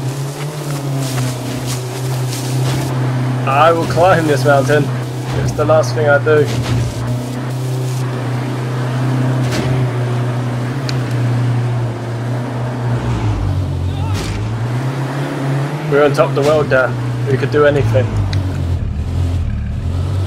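A vehicle engine hums steadily while driving over rough ground.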